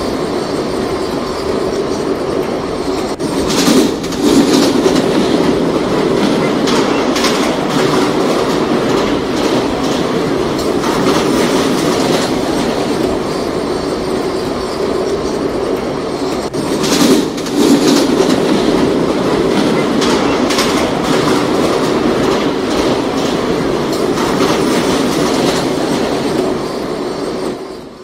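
A subway train rumbles and rattles steadily along the tracks.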